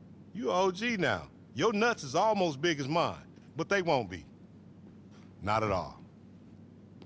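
A young man speaks casually, close by.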